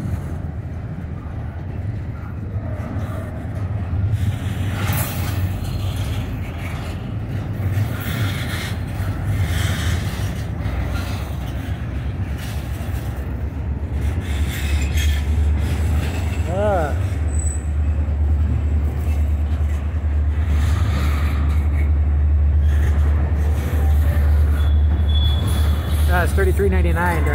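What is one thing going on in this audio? A long freight train rumbles steadily past close by, growing louder.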